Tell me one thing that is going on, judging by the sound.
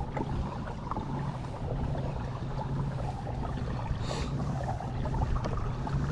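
Water laps against a kayak's hull.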